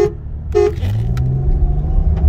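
A car engine revs up, rising in pitch.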